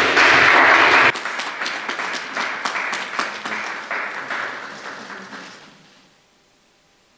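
A group of people applaud, then the clapping fades away.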